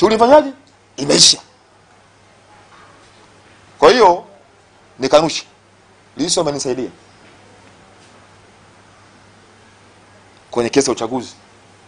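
A man speaks into microphones in short, emphatic bursts with pauses between them.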